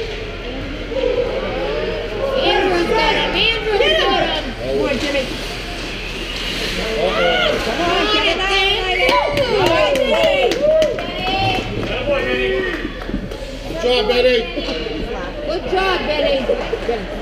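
Young hockey players shout and call out in a large echoing rink.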